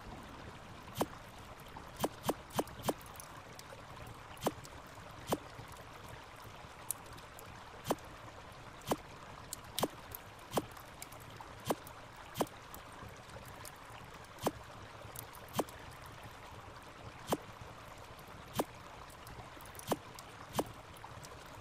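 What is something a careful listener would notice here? Short, sharp clicks sound now and then.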